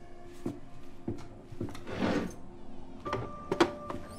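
Heavy footsteps thud on a wooden floor.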